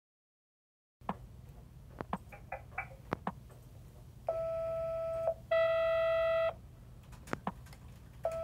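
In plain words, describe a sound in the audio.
Fingers tap on a phone.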